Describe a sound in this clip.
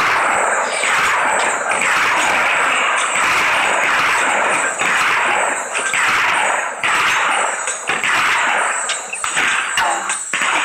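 Cannons fire and shells explode over and over in a rapid barrage.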